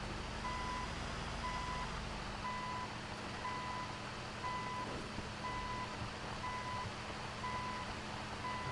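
A bulldozer's engine rumbles as it drives.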